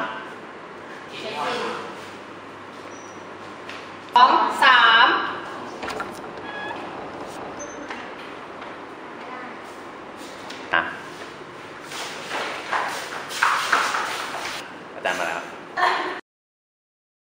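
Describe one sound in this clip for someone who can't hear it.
Young women chat and laugh nearby in a room.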